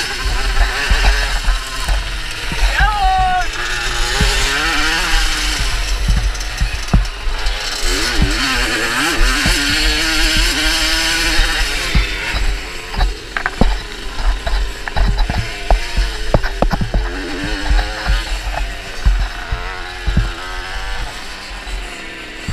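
A motorbike engine revs and roars loudly close by, rising and falling in pitch.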